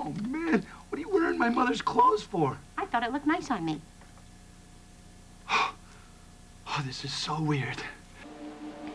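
A young man speaks with dramatic emphasis, close by.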